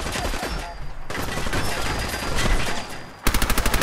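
An explosion booms and debris crashes.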